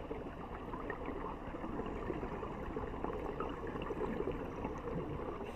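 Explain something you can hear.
Underwater, a steady muffled rush fills the sound, dotted with soft crackles.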